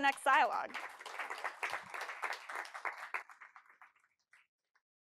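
A woman speaks into a microphone in a large room.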